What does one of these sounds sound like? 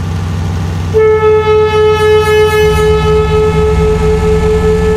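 A truck's horn sounds a long, loud, pulsing blast.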